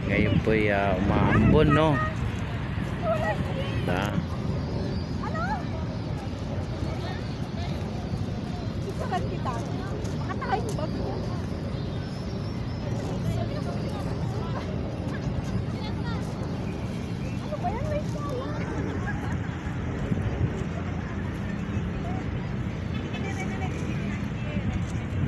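Young women talk and laugh nearby, outdoors.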